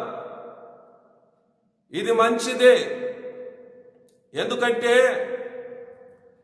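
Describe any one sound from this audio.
A man sings into a microphone in short phrases with heavy echo.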